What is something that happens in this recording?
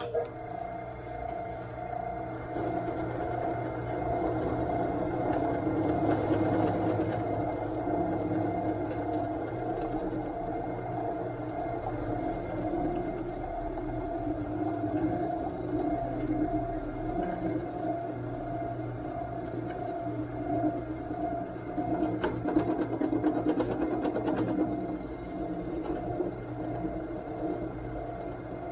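A milling machine whirs steadily as its cutter grinds through metal.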